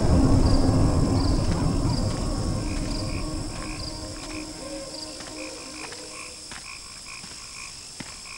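Footsteps tap on a stone floor.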